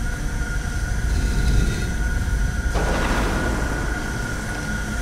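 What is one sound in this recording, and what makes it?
A low magical hum swells with a shimmering whoosh.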